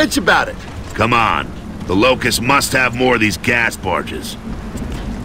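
A man answers in a deep, firm voice, close by.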